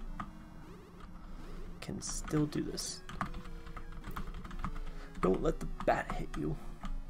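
Retro electronic game music plays steadily.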